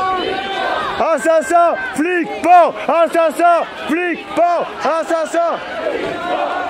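A crowd chants loudly in rhythm.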